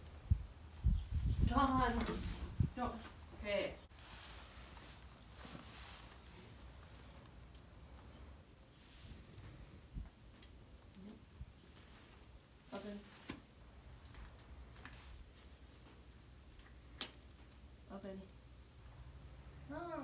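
A woman talks quietly and calmly nearby.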